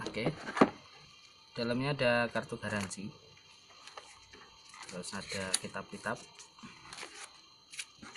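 Paper sheets rustle as they are lifted and set down.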